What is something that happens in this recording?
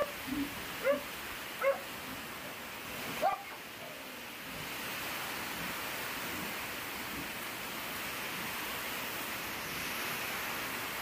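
Dogs sniff and snuffle at a plastic sheet.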